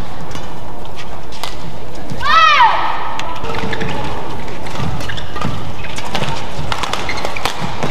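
Rackets strike a shuttlecock with sharp pops in a rally.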